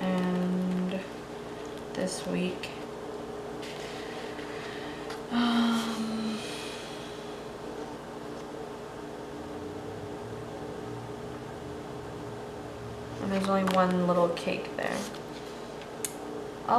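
Sticker sheets rustle and crinkle as hands handle them.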